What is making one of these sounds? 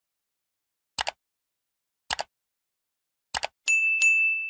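A mouse button clicks several times.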